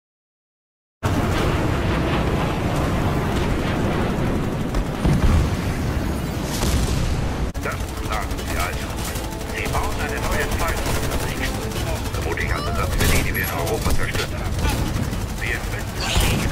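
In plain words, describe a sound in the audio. Shotguns fire in loud bursts.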